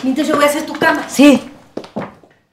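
A woman speaks with feeling nearby.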